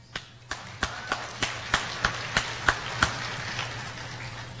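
An audience claps in a large echoing hall.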